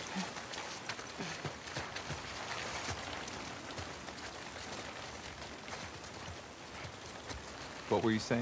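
Footsteps rustle through tall wet grass.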